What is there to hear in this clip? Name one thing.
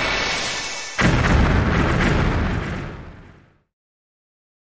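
A game creature whooshes in a spinning attack.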